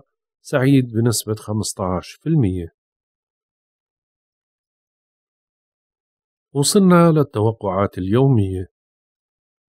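A middle-aged man speaks calmly and clearly into a microphone, with pauses.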